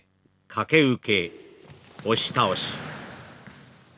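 A body thuds onto a padded mat.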